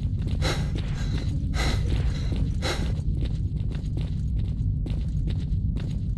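Footsteps thud on a hard floor in an echoing tunnel.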